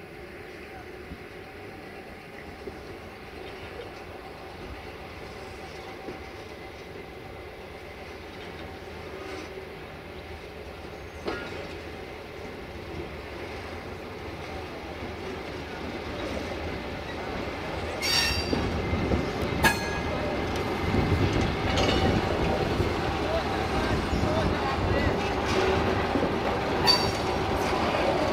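A slow work train rumbles along the rails, growing louder as it draws near.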